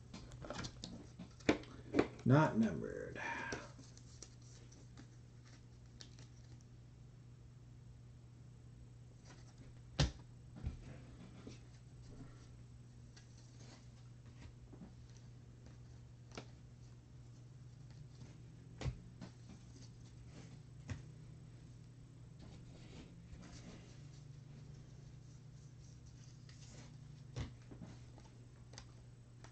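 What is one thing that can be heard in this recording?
Trading cards shuffle and rustle between hands.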